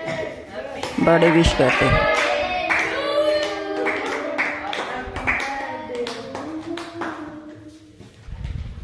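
Several women and girls sing together in a bright, cheerful tone.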